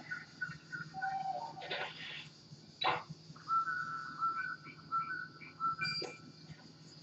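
Video game music plays through a television speaker with chiming tones.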